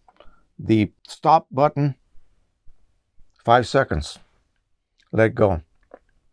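An elderly man speaks close by in short, animated bursts.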